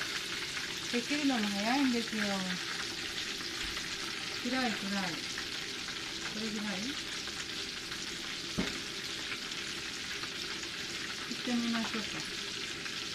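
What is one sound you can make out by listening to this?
An older woman speaks calmly and close by.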